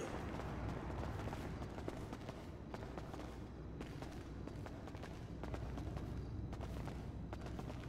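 Footsteps climb concrete stairs.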